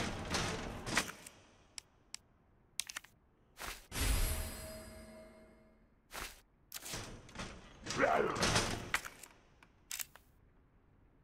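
Short electronic clicks and whooshes sound in quick succession.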